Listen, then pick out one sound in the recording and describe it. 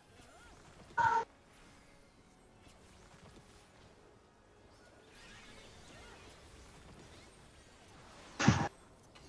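Video game spell effects chime and burst.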